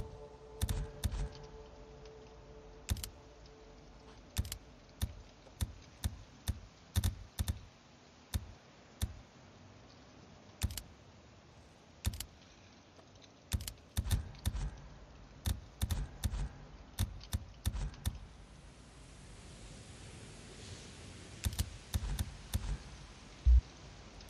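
Short menu clicks tick again and again as options are picked.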